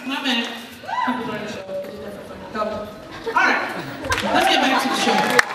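A young man speaks with animation into a microphone in a large echoing hall.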